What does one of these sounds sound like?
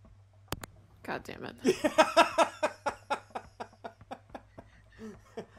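A middle-aged man laughs loudly and heartily into a microphone.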